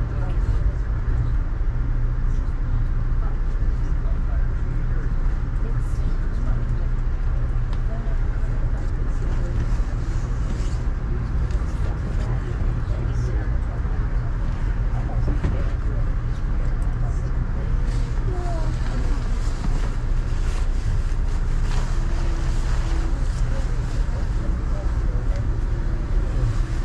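A vehicle rumbles steadily along the road, heard from inside.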